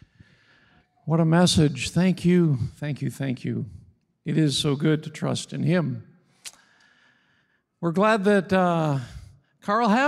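An elderly man speaks calmly into a microphone, heard over loudspeakers in a large hall.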